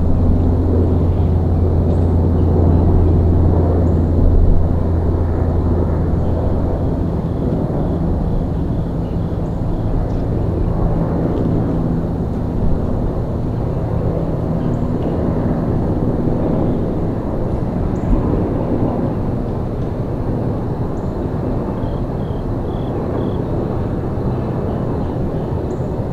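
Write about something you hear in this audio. Wind rustles through tree leaves outdoors.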